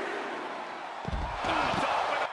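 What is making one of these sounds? A heavy body slams onto a hard floor with a thud.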